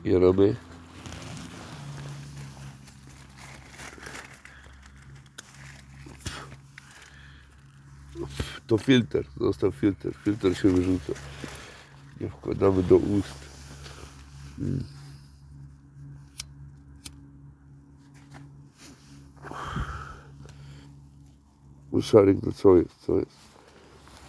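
A man talks softly and close by.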